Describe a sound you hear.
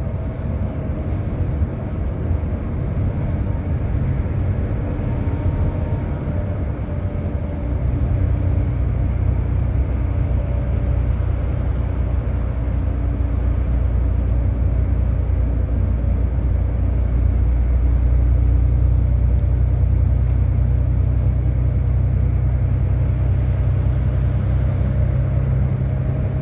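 Tyres hum on a highway.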